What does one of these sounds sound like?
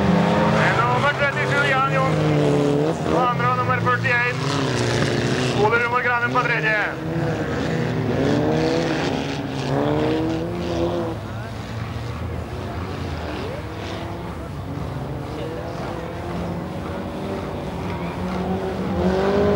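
Racing car engines roar and rev hard as cars speed past.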